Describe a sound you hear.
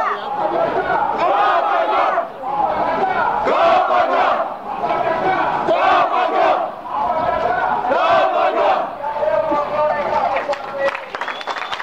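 A crowd of men shouts loudly and angrily close by.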